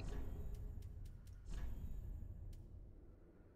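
A game menu gives short clicks as items are selected.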